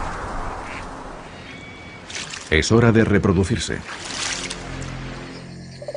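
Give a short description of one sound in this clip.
A toad splashes in water.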